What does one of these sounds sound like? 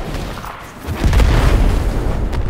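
A loud explosion booms with a deep rumble.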